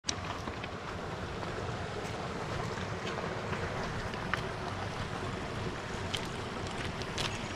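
A shallow river rushes steadily over stones nearby.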